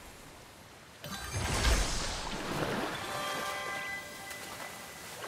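Water splashes as a figure wades and runs through it.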